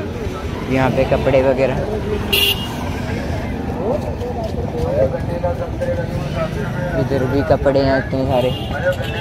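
A busy outdoor market crowd murmurs with many voices.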